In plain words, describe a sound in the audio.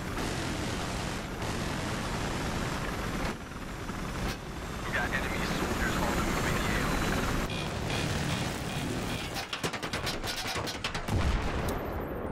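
A helicopter's rotor thumps and roars steadily.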